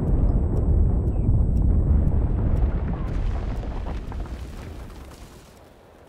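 A loud explosion rumbles deeply and slowly fades.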